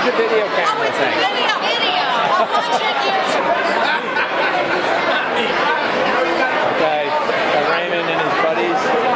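A group of men and women sing loudly together close by.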